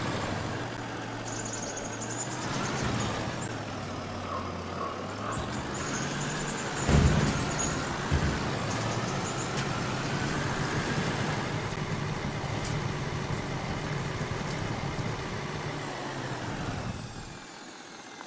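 A truck engine roars and strains as a truck drives through mud.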